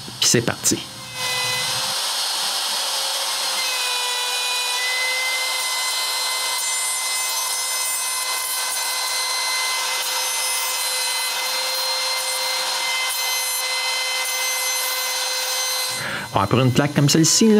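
A router spindle whines steadily at high pitch as it cuts into wood.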